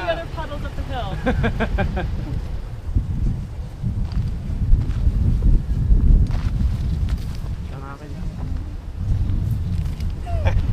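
Wind rumbles into the microphone outdoors.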